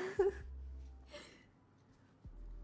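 A young woman giggles softly close to a microphone.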